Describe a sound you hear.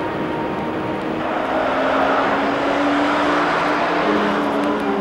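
A minibus engine hums as it drives past on a road.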